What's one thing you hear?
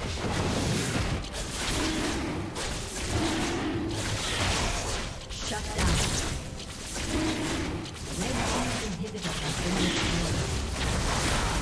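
Magic blasts crackle and boom in a video game battle.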